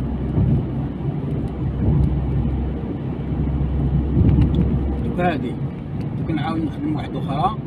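A car drives along an asphalt road, heard from inside as a low rumble.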